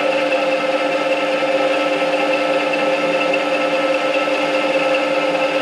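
A milling machine's end mill grinds steadily into metal with a loud, droning whine.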